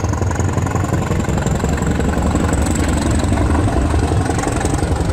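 A diesel train rumbles along the track.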